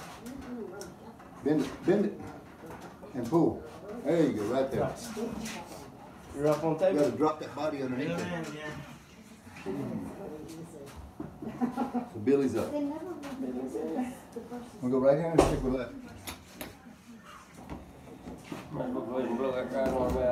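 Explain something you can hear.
Several men talk and laugh loudly nearby.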